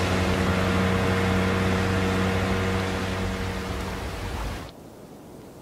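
A motorboat engine drones loudly as the boat speeds over the water.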